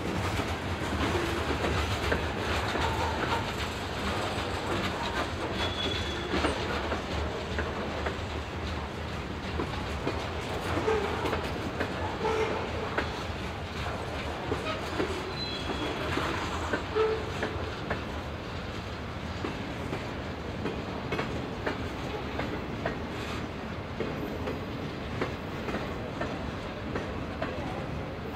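Steel wheels clatter and click over rail joints.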